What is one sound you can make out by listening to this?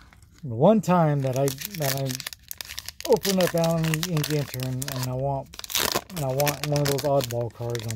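A foil card pack wrapper crinkles and tears open.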